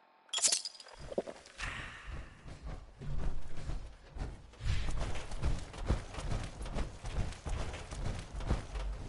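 Heavy metal footsteps clank and thud steadily.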